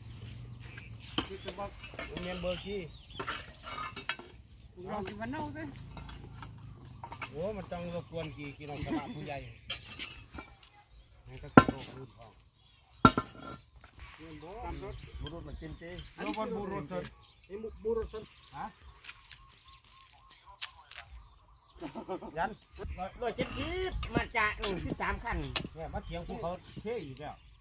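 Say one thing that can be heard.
Metal bars scrape and knock against concrete rubble.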